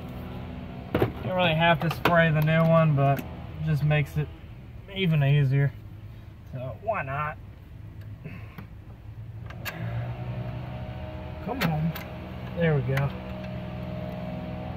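Hands knock and click against metal engine parts.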